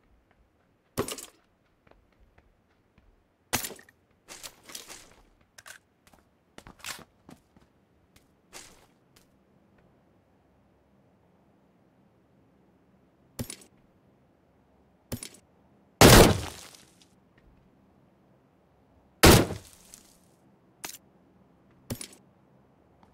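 Items are picked up with short clicks and rustles.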